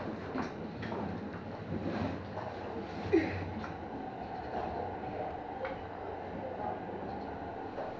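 A train slows and glides into a station.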